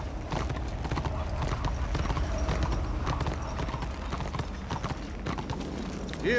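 A horse's hooves thud rhythmically on snowy ground.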